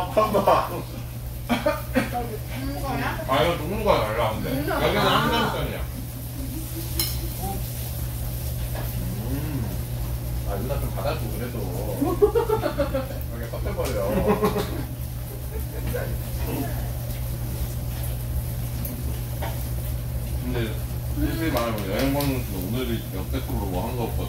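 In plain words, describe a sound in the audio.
Chopsticks and cutlery clink against plates.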